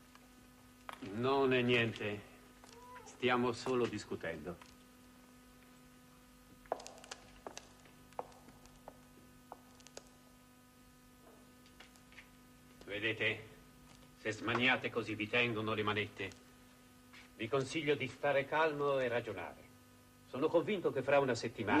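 A man speaks in short, tense phrases with pauses between them.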